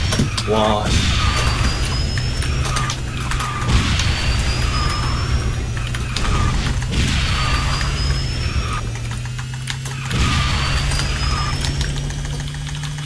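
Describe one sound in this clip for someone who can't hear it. Boost bursts whoosh loudly every few seconds.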